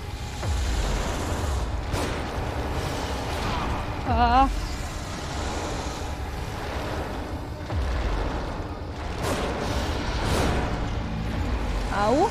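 A young woman speaks quietly into a microphone.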